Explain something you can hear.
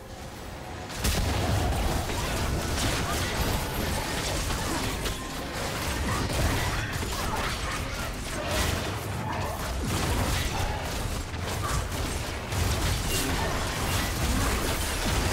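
Video game spell effects crackle and boom during a fight.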